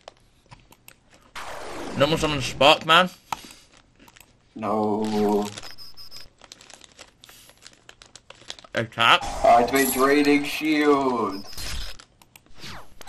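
A computer card game plays short digital sound effects as cards are played.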